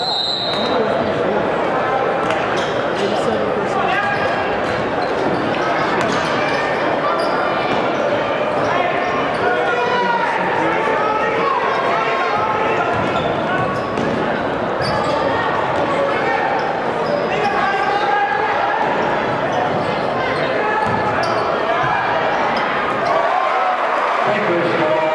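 A crowd cheers and chatters loudly in a large echoing gym.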